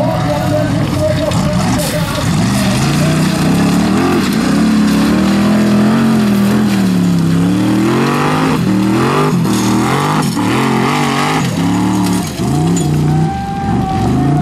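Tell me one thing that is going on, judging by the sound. Tyres spin and throw gravel and stones.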